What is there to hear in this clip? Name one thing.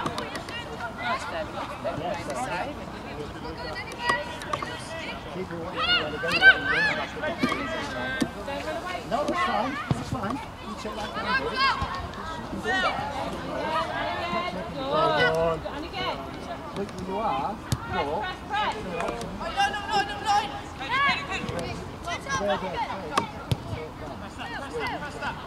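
Spectators on the sideline talk nearby.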